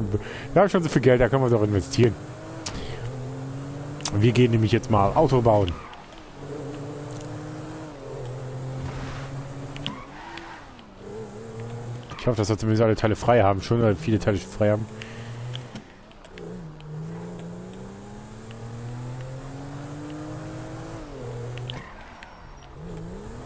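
A car engine revs up and drops as it shifts through the gears.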